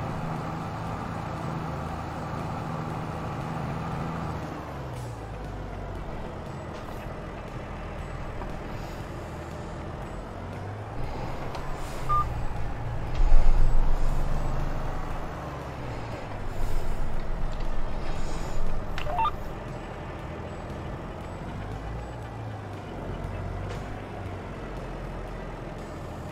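A tractor engine rumbles steadily, rising and falling as it works.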